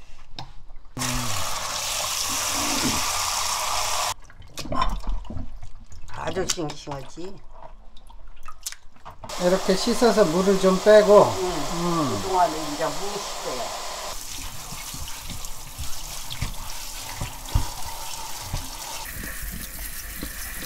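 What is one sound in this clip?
Tap water runs and splashes steadily into a sink.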